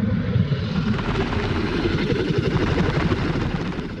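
Large wings beat with heavy whooshing gusts.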